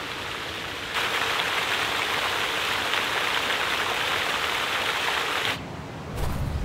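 A fountain splashes steadily into a pond.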